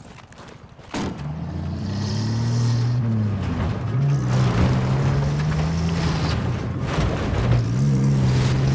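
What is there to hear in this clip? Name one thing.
An off-road vehicle's engine revs as it pulls away and drives.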